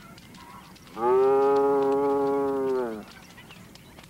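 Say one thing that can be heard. A cow moos loudly with a long, steady call.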